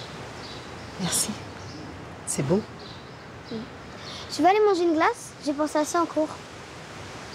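A woman speaks gently, close by.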